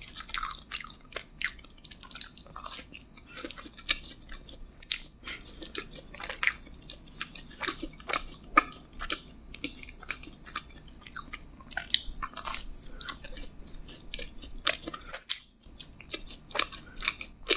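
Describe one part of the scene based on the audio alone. A young woman bites and chews soft food close to a microphone, with crisp sprinkles crunching.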